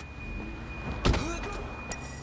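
A car door opens with a thud.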